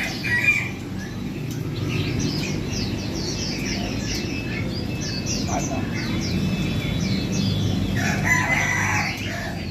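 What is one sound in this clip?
Caged birds chirp and twitter.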